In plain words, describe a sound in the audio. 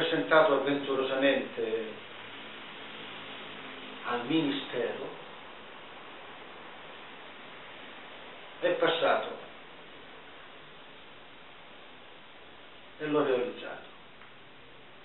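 An older man speaks calmly in short bursts, close to the microphone, with pauses between.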